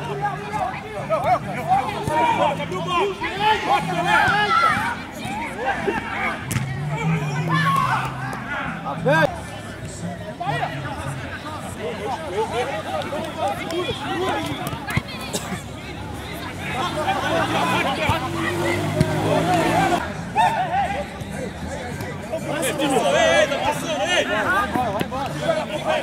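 A ball is kicked hard with a dull thump.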